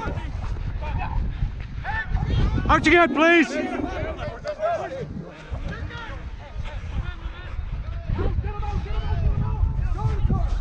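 Young men shout to each other across an open field, outdoors.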